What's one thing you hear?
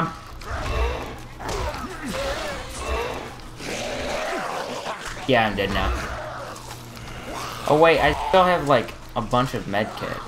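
A zombie snarls and groans.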